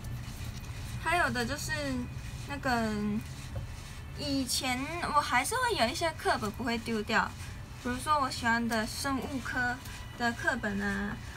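A young woman talks close to a microphone, in a lively voice.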